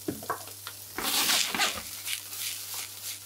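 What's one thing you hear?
Vegetables are tossed in a pan with a rustling whoosh.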